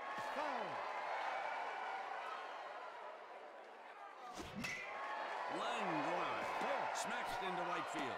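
A stadium crowd cheers and murmurs steadily.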